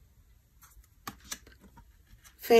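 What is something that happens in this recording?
Playing cards slide and tap softly against each other.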